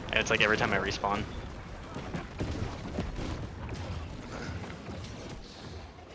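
Magic spells whoosh and crackle amid clashing combat sounds.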